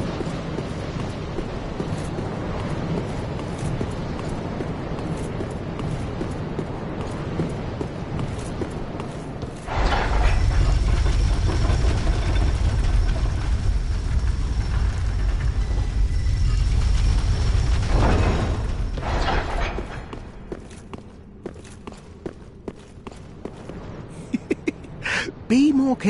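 Armoured footsteps scuff across stone.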